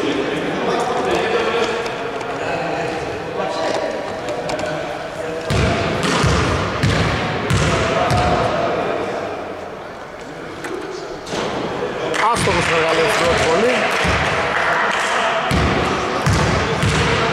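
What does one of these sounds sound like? Voices of players and spectators echo around a large indoor hall.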